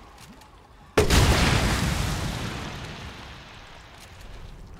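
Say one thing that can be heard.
A gunshot bangs loudly and echoes away.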